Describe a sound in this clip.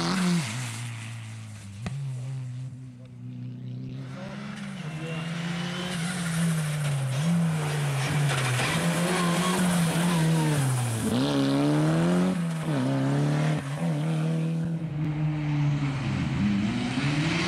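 A rally car engine roars, rising and falling in pitch as it draws closer.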